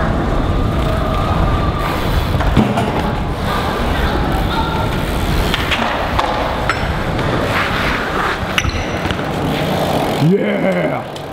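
Bike tyres roll and rattle over concrete.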